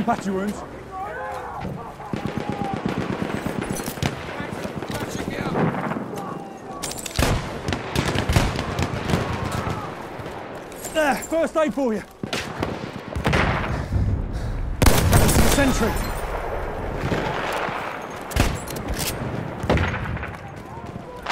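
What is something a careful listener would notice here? Gunshots crack and explosions boom in a game.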